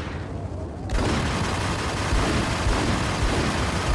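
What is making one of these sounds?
Pistol shots ring out loudly.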